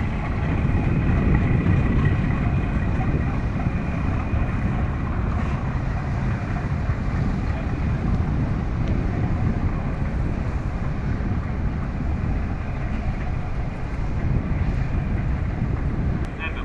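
A boat engine rumbles steadily as a boat moves away.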